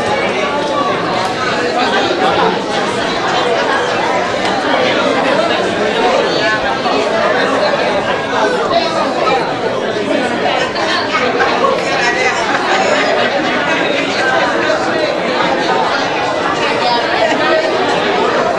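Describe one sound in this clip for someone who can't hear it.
A crowd of men and women talk and greet each other all at once in a large echoing hall.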